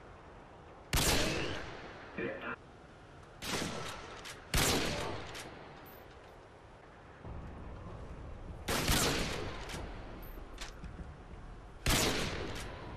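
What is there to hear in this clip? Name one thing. A sniper rifle fires loud single shots that echo away.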